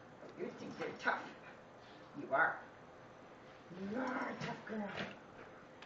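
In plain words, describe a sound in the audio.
A small dog growls playfully up close.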